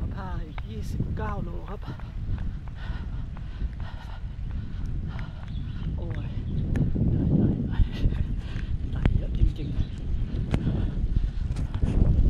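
A man talks breathlessly close to a microphone.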